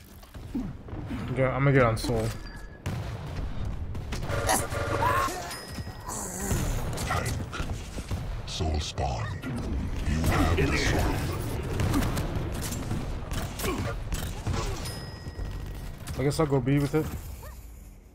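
Gunfire and explosions from a video game blast and crackle.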